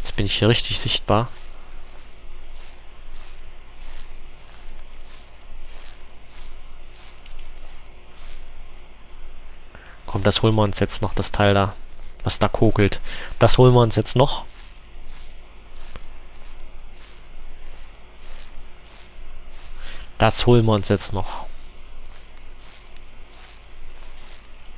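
Footsteps rustle steadily through tall dry grass.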